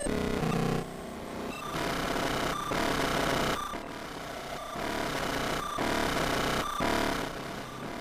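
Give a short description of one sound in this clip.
A synthesizer plays a sequence of pulsing electronic chords.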